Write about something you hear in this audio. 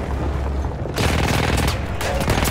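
Gunfire crackles in bursts.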